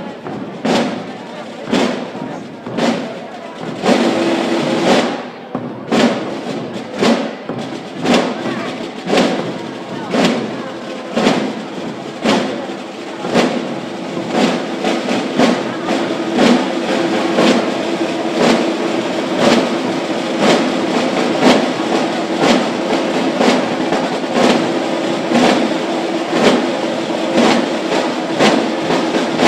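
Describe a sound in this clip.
A drum beats steadily outdoors in a slow march rhythm.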